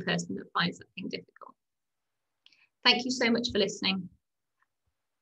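A young woman speaks calmly through a microphone, as on an online call.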